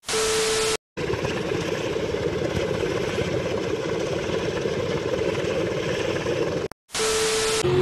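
A cutting torch roars steadily.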